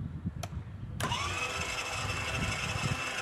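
A toy motorbike starts playing loud electronic engine sounds.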